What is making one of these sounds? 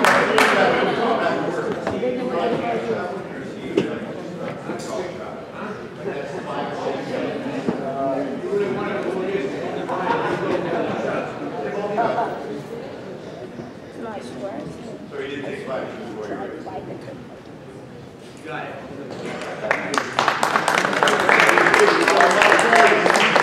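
A crowd chatters and murmurs in a large echoing gym.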